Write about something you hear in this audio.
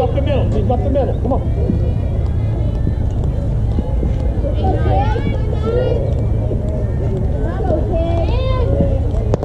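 Young women cheer and call out across an open field.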